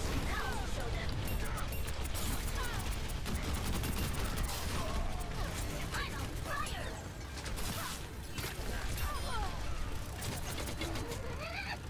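Rapid weapon fire crackles and pops in a game.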